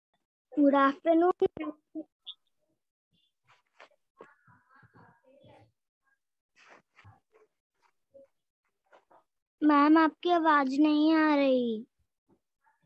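A young girl speaks in a high voice over an online call.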